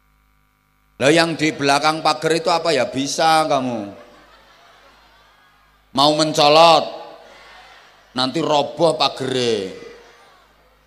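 A man speaks loudly and with animation into a microphone, heard through loudspeakers with an echo.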